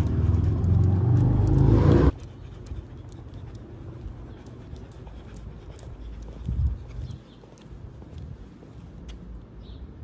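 A dog's claws click lightly on pavement.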